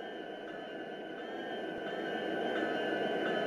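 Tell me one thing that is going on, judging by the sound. A diesel locomotive engine rumbles steadily and grows louder.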